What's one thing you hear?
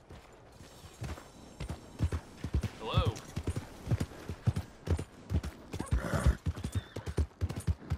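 A horse's hooves thud steadily on a dirt path at a trot.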